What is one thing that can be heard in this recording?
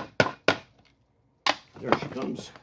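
A hammer taps sharply on a metal window frame.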